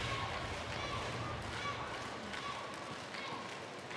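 A volleyball bounces on a hard floor.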